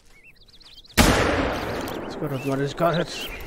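A rifle fires a single loud shot in a forest.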